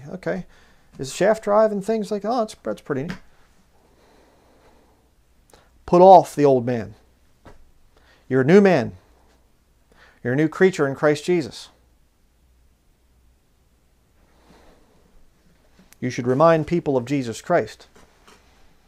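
A man speaks calmly and clearly, close to a microphone, in short phrases with pauses.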